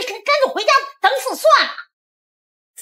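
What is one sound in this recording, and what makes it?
A middle-aged woman speaks loudly and emphatically.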